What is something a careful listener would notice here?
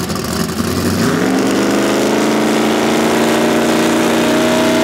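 A drag racing car launches at full throttle, its engine roaring higher as it pulls away.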